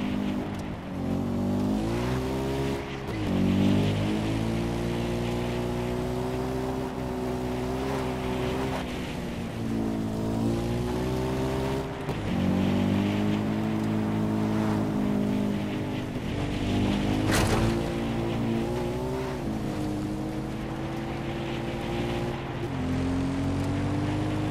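A quad bike engine drones and revs as it rides over rough ground.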